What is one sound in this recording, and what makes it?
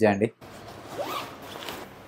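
Things rustle as a bag is rummaged through.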